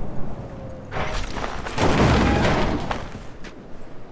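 A metal dumpster lid bangs open.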